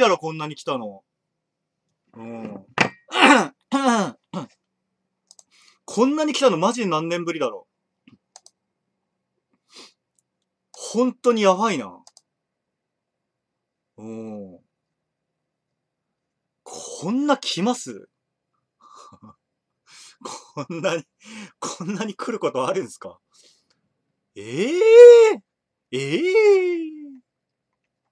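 A young man talks calmly and close by, in short bursts with pauses.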